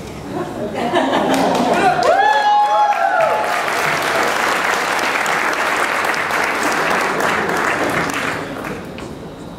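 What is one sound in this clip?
A crowd applauds in an echoing room.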